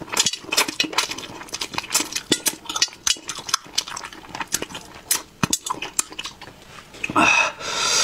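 A man chews and smacks his lips loudly, close to a microphone.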